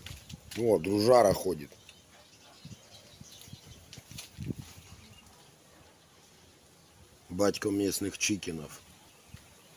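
A rooster crows nearby.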